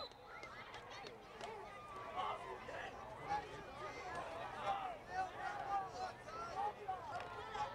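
Young men on a field shout and call to each other.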